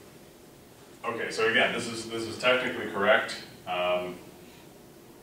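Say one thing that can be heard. A man lectures.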